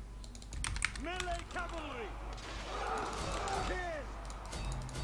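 Weapons fire and clash in a busy battle.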